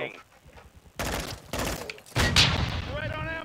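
A rifle fires loud, sharp bursts of gunshots.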